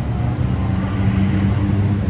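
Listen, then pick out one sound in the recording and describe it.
A motorbike engine idles nearby.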